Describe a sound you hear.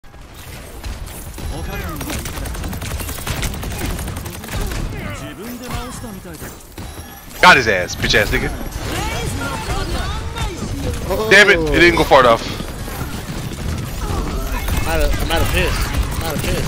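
Energy shots fire in quick bursts with sharp zaps.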